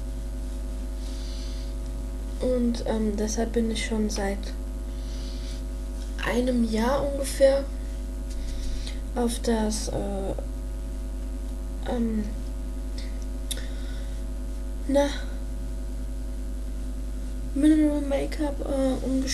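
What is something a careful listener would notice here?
A makeup brush brushes softly across skin.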